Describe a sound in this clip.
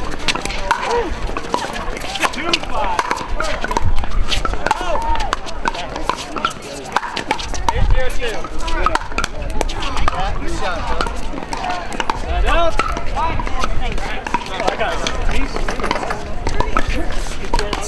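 Paddles pop sharply against a plastic ball in a quick rally.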